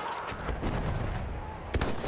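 A rifle shot cracks nearby and echoes.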